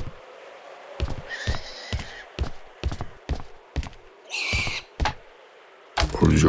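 A hammer knocks on wood in quick, sharp blows.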